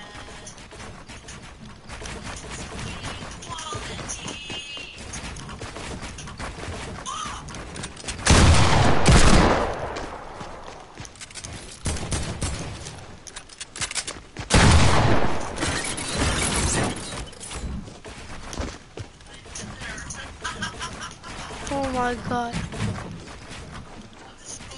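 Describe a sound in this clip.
Video game building pieces clatter and snap into place in quick bursts.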